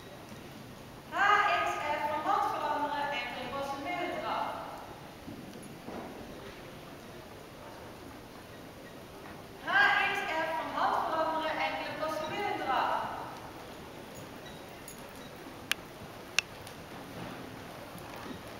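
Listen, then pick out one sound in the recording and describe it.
A horse's hooves thud softly on sand in a large hall.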